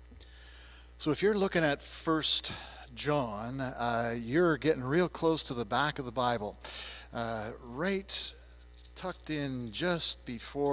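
An older man speaks calmly into a microphone in a large echoing hall.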